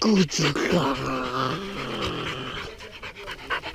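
A dog whines and yelps up close.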